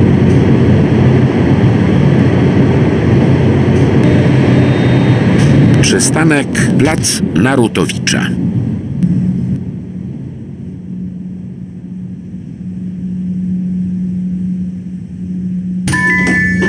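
An electric tram motor hums steadily.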